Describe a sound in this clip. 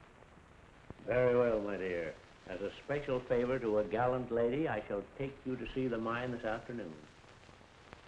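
An elderly man speaks earnestly, close by.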